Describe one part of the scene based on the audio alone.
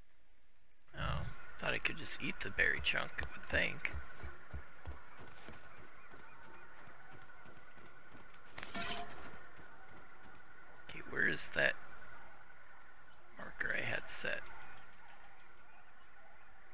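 Footsteps rustle through dry leaves and grass.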